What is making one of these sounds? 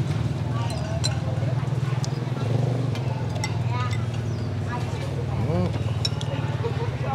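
A metal spoon clinks against a ceramic bowl.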